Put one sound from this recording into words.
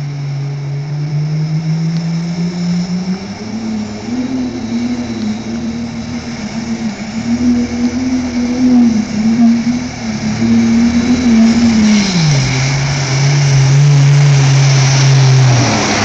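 Water churns and splashes around a truck pushing through deep water.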